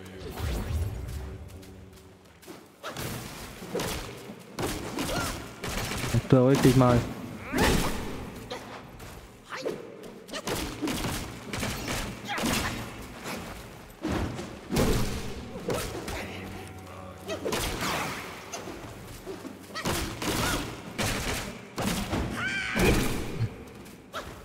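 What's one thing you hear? Metal weapons clash and strike repeatedly with sharp impacts.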